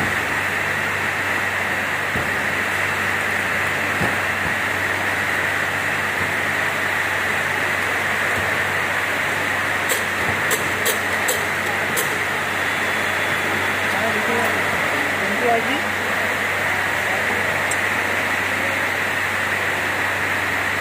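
An induction cap sealer hums with a steady high whine.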